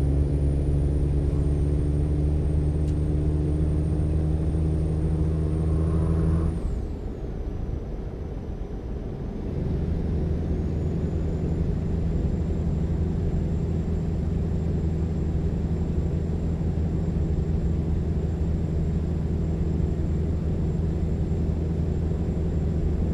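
A truck engine drones steadily, easing off briefly before pulling again.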